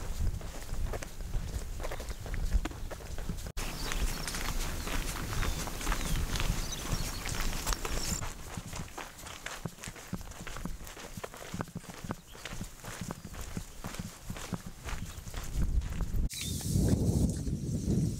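Wind blows steadily outdoors, rustling through grass.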